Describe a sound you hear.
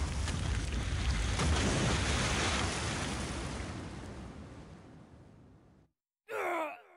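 A deep roar rumbles as burning rocks tumble, slowly fading away.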